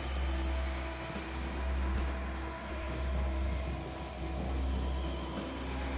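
A synthesizer plays a deep, droning electronic tune with short repeating notes.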